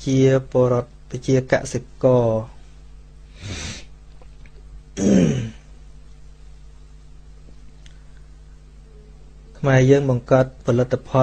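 A man speaks calmly into a microphone, preaching with pauses.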